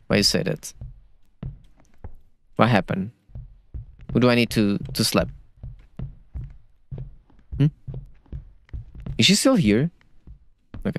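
A young man talks animatedly into a close microphone, in short bursts.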